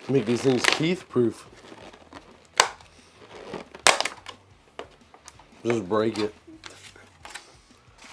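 A plastic lid clicks and crackles as a container is opened.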